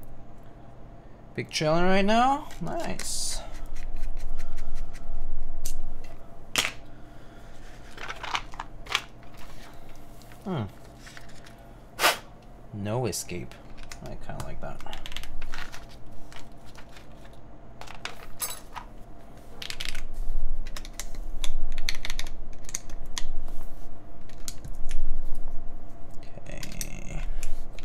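Keys clack as fingers type on a mechanical keyboard.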